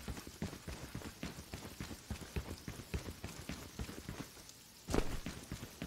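Quick footsteps run over soft ground.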